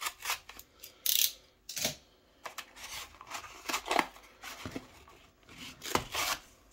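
Cardboard scrapes and rustles as it is handled.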